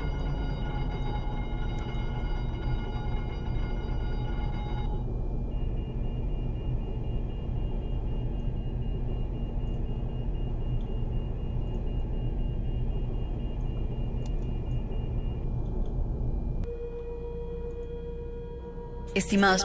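An airliner's engines hum steadily at idle.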